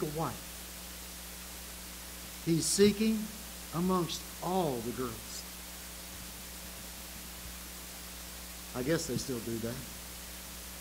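An elderly man speaks slowly and with feeling through a microphone, with pauses, in a room with a slight echo.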